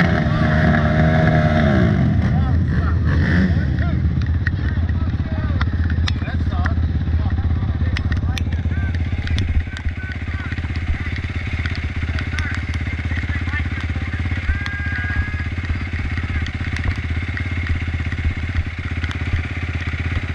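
A quad bike engine idles with a steady, close rumble.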